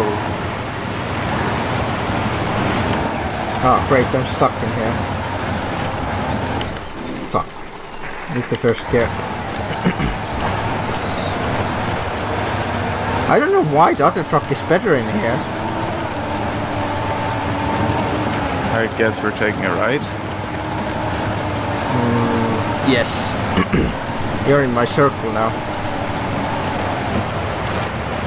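A heavy truck engine rumbles and strains at low speed.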